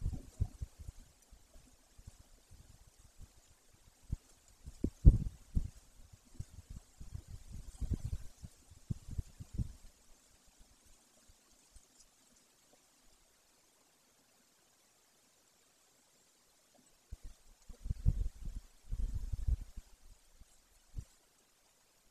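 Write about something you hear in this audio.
Wind gusts rustle branches and rumble against the microphone outdoors.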